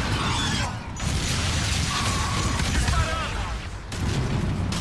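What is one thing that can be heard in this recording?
Laser guns fire in rapid, zapping bursts.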